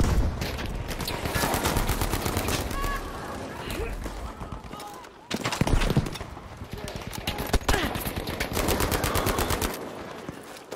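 An automatic rifle fires rapid bursts of gunshots close by.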